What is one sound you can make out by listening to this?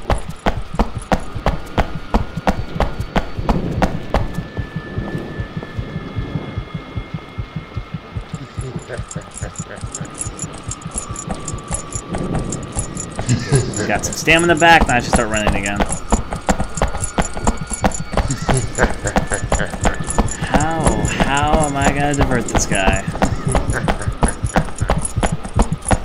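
Footsteps thud steadily on a metal walkway.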